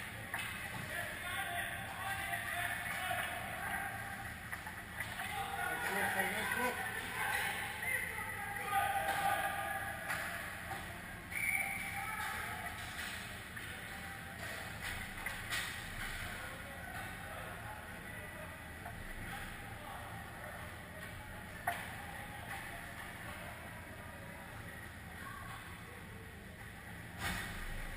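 Skate blades scrape and swish across the ice in a large echoing rink.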